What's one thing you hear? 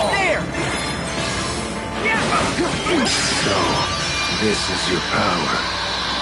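Video game combat sounds clash and whoosh with bursts of magical effects.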